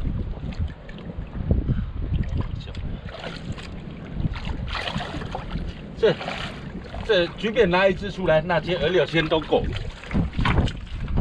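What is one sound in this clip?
Hands splash and slosh in shallow muddy water.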